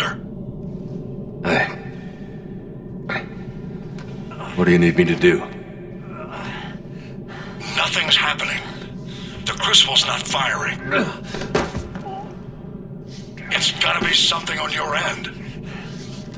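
A man speaks in a weak, strained voice, close by.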